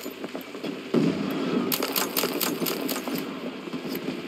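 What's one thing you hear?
Gunfire rattles in bursts nearby.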